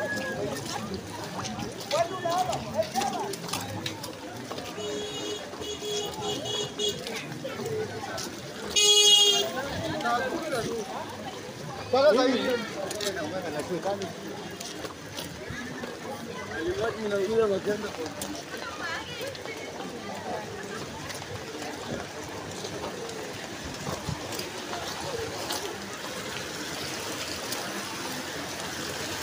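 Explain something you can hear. Rain patters steadily on a wet street outdoors.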